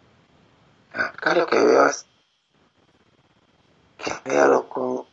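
A middle-aged man speaks into a microphone over an online call.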